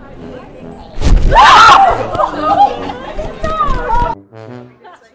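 Young women laugh loudly.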